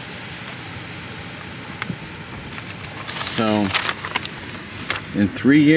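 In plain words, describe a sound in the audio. A sheet of paper rustles and crinkles in a hand.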